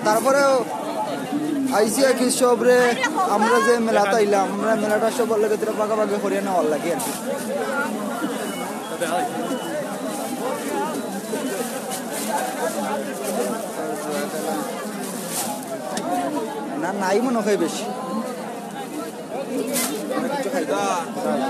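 Several men and women talk nearby in a busy crowd.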